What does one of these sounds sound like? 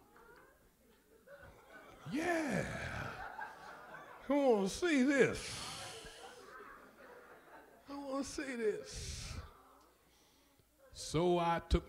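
A man preaches with passion into a microphone, his voice rising and falling in bursts, in a room with some echo.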